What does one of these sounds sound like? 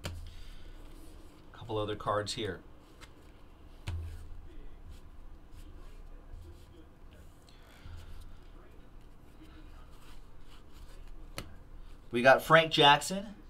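Trading cards shuffle and slide against each other in hands.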